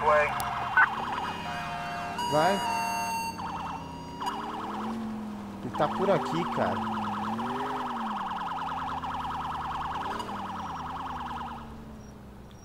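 A police siren wails and yelps.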